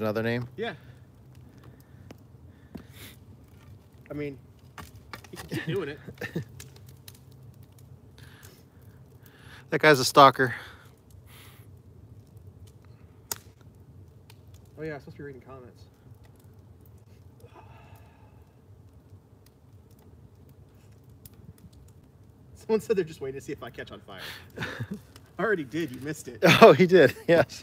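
A fire crackles and pops softly outdoors.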